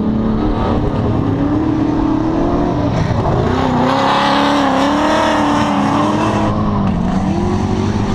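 Tyres screech as cars slide across the track.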